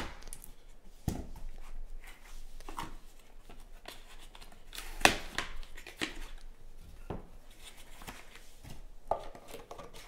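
Cards and cardboard tap and rustle.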